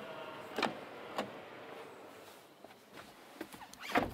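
A car door latch clicks open.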